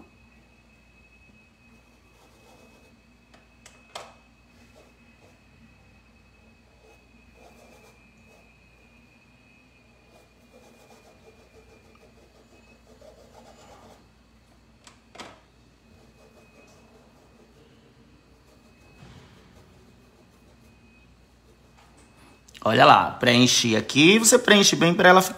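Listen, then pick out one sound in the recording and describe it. A paintbrush softly dabs and brushes on cloth.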